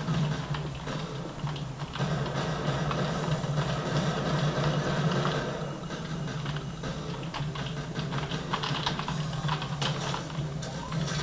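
Keys click and clatter on a keyboard.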